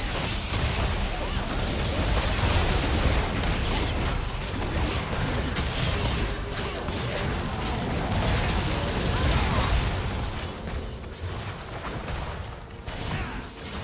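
Spell blasts, explosions and weapon clashes sound in a busy video game battle.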